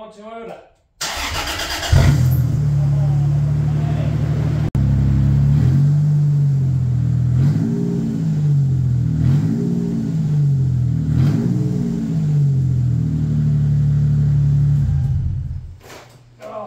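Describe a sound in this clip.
An engine starts up, idles loudly and revs a few times, then shuts off.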